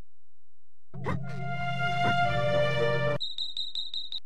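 A short, bright game tune plays.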